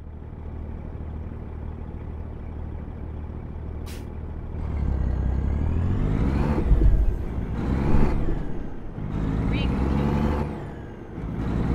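A truck's diesel engine rumbles steadily and revs up and down as it turns.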